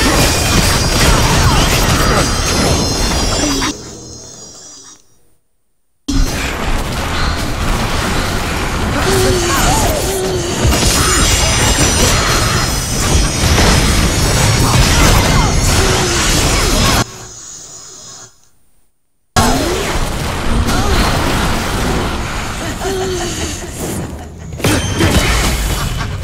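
Blades clash and slash in a fast fight.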